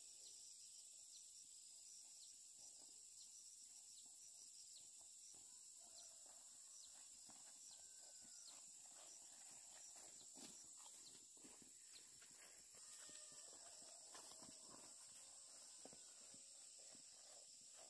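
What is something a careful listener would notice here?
Footsteps tread softly on a grassy dirt path.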